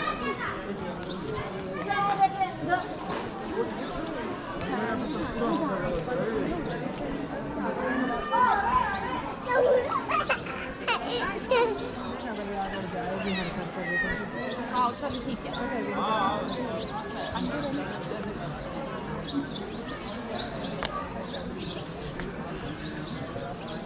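Several adult men and women talk casually nearby and farther off, outdoors.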